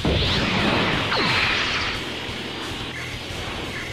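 An energy aura crackles and roars.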